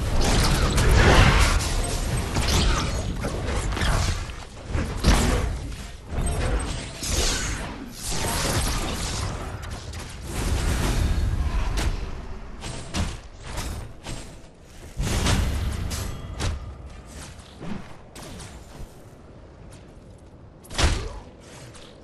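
Game weapons fire and abilities burst with loud blasts.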